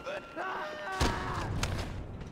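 A body slams down onto a hard floor with a thud.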